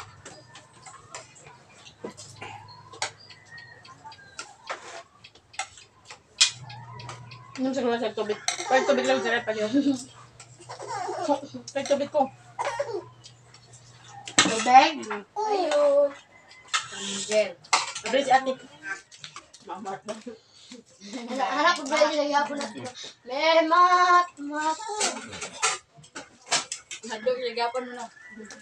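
Spoons and forks clink against plates and bowls.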